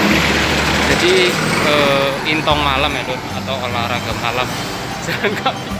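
A man speaks close by in a calm voice.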